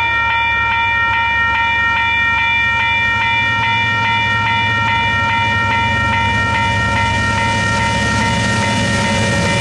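A diesel locomotive engine rumbles and grows louder as it approaches.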